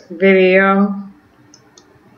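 An older woman speaks calmly into a nearby microphone.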